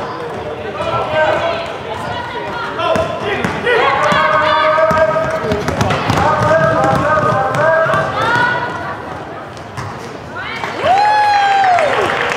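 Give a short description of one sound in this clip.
Young women and girls shout and call out loudly in a large echoing hall.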